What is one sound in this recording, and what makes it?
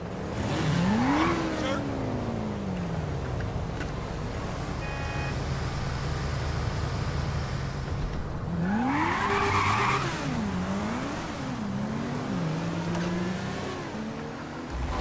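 A motorcycle engine revs up and down nearby.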